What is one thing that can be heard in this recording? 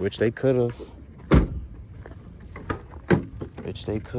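A car door shuts with a solid thud.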